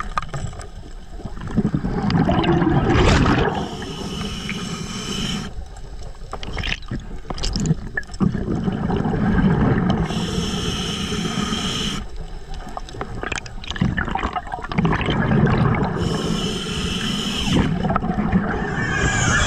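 Bubbles from a diver's breathing gurgle and rumble in bursts underwater.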